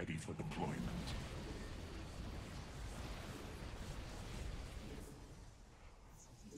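Explosions boom and rumble amid rapid weapon fire.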